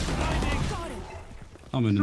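A rifle fires a burst of rapid shots.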